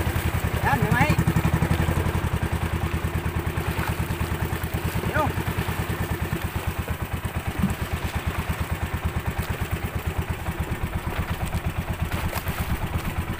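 Water rushes and splashes against a small boat's hull.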